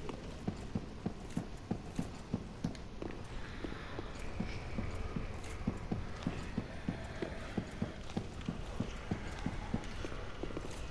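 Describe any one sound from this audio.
Heavy armoured footsteps thud steadily on stone.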